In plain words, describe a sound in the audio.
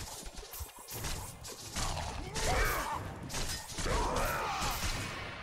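Heavy blows thud and crunch against creatures.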